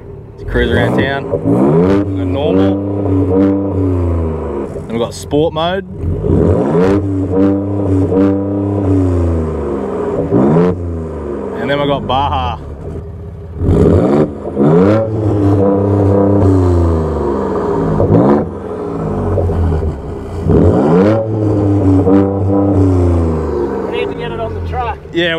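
A truck engine revs hard again and again, roaring through the exhaust close by.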